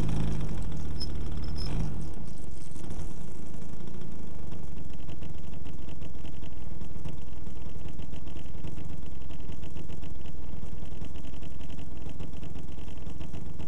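Wind buffets and rumbles loudly across the microphone outdoors.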